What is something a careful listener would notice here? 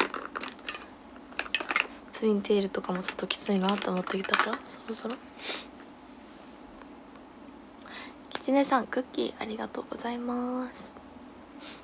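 A young woman talks casually and closely into a microphone.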